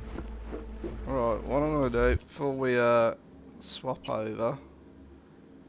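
A man speaks with animation into a nearby microphone.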